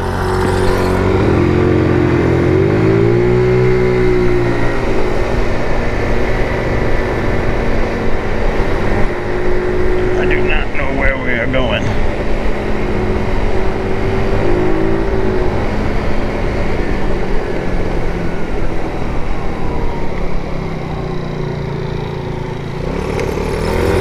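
Wind rushes past a moving rider.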